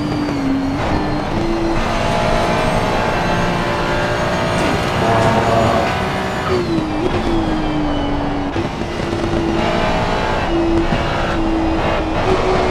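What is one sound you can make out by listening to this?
A racing car engine roars steadily, its pitch rising and falling as the car shifts gears.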